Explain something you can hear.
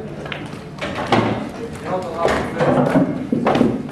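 Pool balls knock together.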